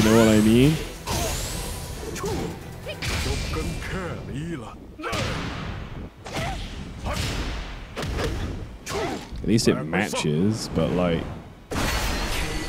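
Heavy punches and kicks land with sharp thuds and cracks.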